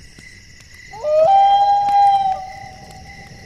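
An owl hoots.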